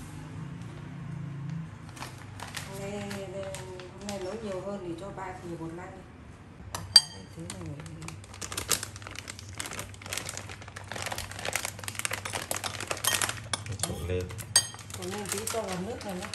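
A metal spoon scrapes and taps in a bowl.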